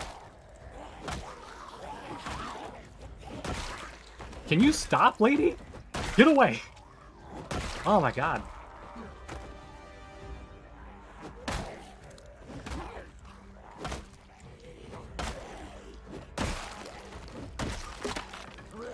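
Blows thud against bodies in quick, repeated strikes.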